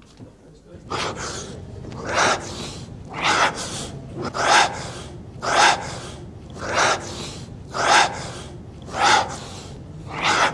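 A man exhales hard with each push-up.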